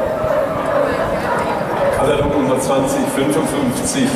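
A dog growls and snarls while tugging at a padded sleeve.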